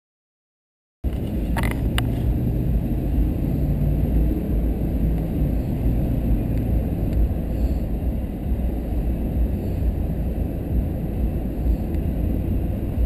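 A car engine hums steadily while driving along a road.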